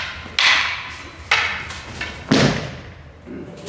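Wooden swords clack together sharply.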